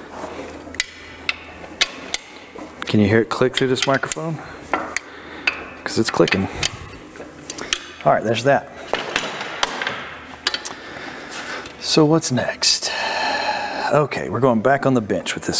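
Metal parts clink and tap against a metal housing.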